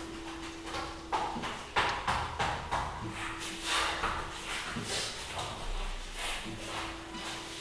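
A man breathes hard with effort.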